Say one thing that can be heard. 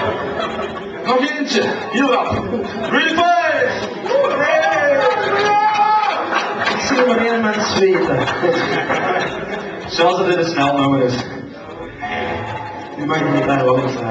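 A young man sings into a microphone, heard through loudspeakers.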